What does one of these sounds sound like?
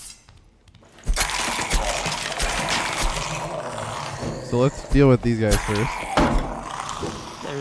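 Weapons clash and bones rattle in a fight.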